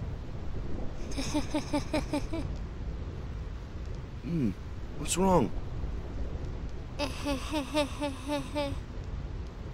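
A young woman giggles mischievously.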